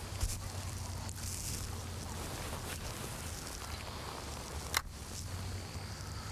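A young man speaks calmly outdoors, close by.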